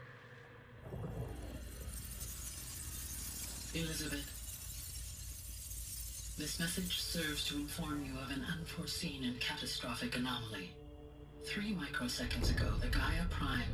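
Bright shimmering sounds swirl and sparkle.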